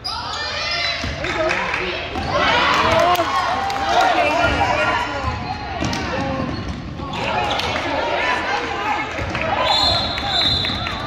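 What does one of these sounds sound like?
Spectators shout and cheer loudly in a large echoing gym.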